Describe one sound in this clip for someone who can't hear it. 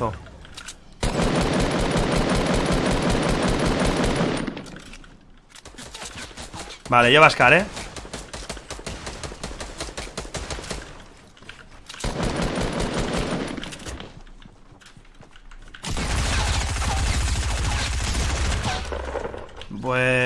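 Gunfire from a game rattles in rapid bursts.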